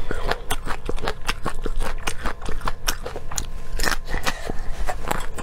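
Wet chewing and slurping sounds come close to a microphone.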